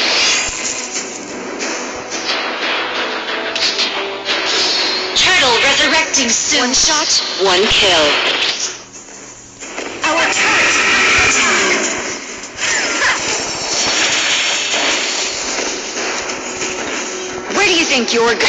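Game fight effects clash and whoosh.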